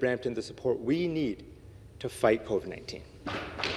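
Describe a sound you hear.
A man speaks with emphasis into a microphone.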